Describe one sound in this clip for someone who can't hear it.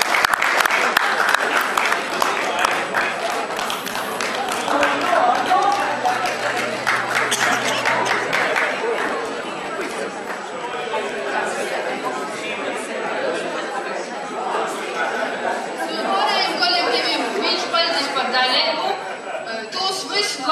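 A crowd chatters loudly in a large echoing hall.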